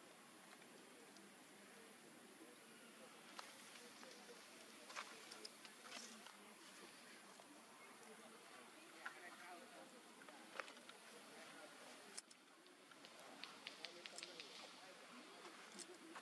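A monkey's feet patter softly on dry leaves and earth.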